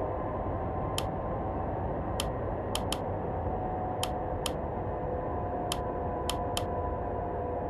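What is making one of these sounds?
Soft clicks of menu buttons sound several times.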